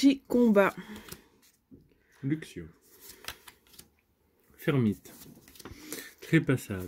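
Playing cards slide and rustle against each other in a hand.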